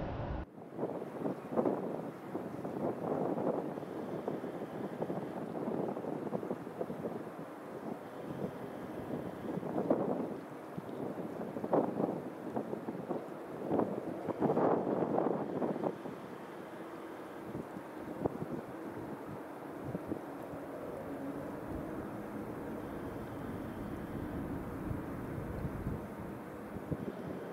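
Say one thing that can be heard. A jet airliner approaches with a low, growing engine roar.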